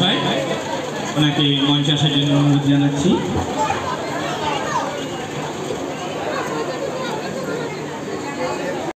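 A crowd of men and women chatters all around.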